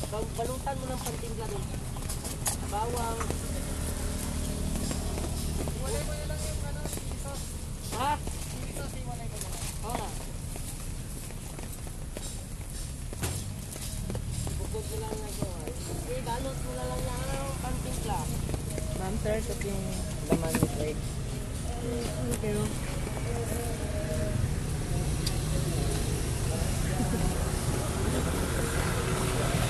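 A young woman talks close by in a casual, chatty way.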